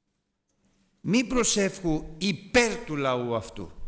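A middle-aged man speaks with animation into a microphone in a slightly echoing room.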